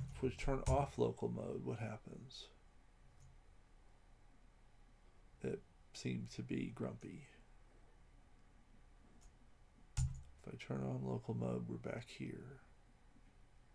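An older man talks calmly into a microphone, in short bursts with pauses.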